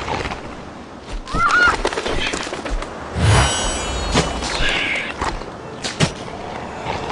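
Video game sound effects crunch and chime in quick bursts.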